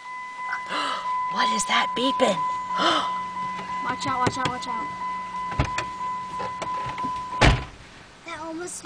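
A young child talks and squeals excitedly nearby.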